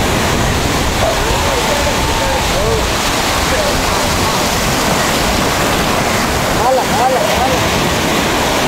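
Men call out to each other outdoors.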